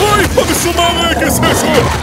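A man shouts urgently.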